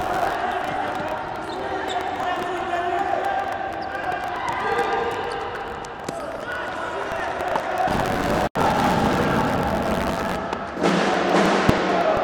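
A ball is kicked on a hard indoor court.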